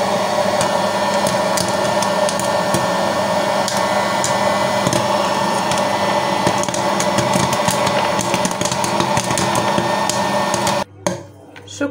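Popcorn kernels pop in quick, sharp bursts.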